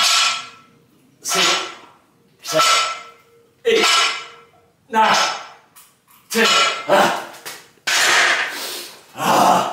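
Heavy weight plates clank and rattle in a steady rhythm.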